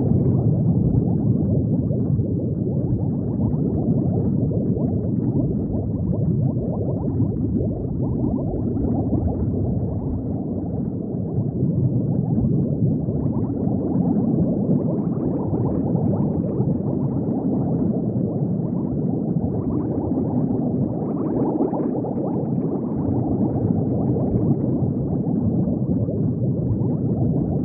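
Bubbles rumble and gurgle steadily underwater.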